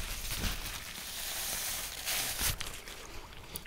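A paper napkin rustles as it wipes a mouth.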